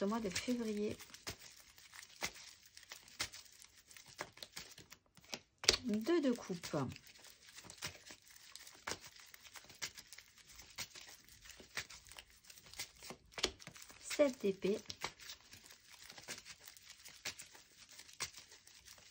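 Playing cards shuffle and riffle in hands.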